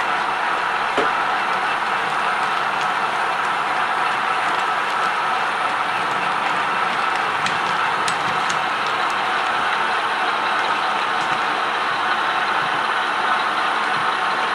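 Small model train wheels click over rail joints.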